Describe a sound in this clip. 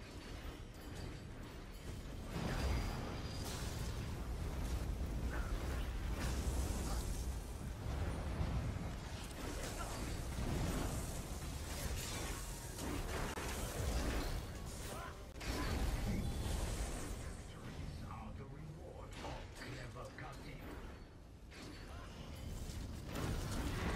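Weapons clash and strike in a game battle.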